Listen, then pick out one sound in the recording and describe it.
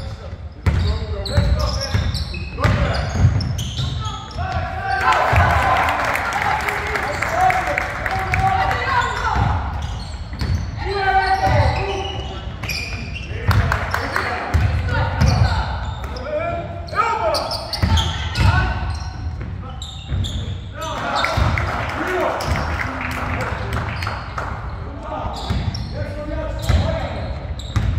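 Young men shout and call to each other across an echoing hall.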